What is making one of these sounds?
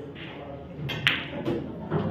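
A cue sharply strikes a billiard ball.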